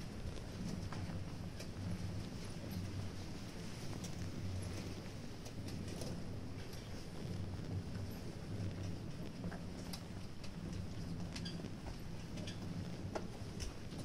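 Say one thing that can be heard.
Footsteps shuffle slowly on a paved street outdoors.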